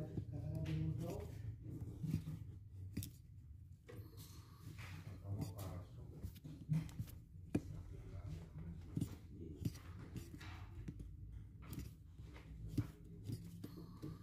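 A knife cuts through thick rubber with soft scraping strokes.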